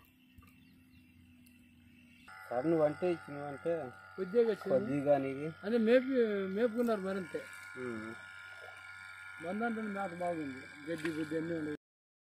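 Liquid pours and splashes into a plastic bucket.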